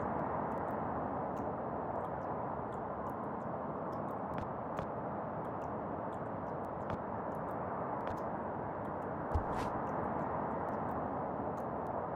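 A wall fan whirs steadily.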